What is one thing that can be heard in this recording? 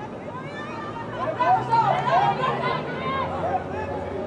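Spectators cheer loudly from the sidelines.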